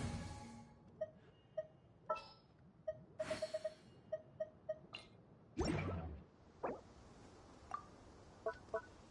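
Short soft chimes and clicks sound as menu options are picked.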